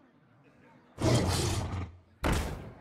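A game card is played with a burst of magical sound effects.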